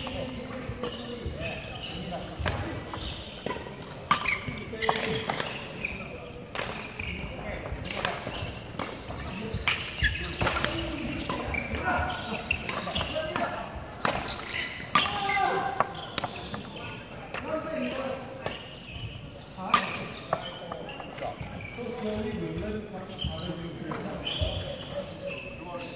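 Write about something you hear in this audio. Sneakers squeak and patter on a wooden court floor.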